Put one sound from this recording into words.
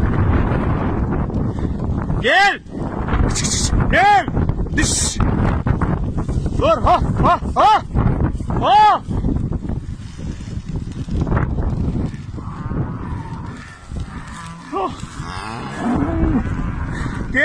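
Strong wind rushes past outdoors.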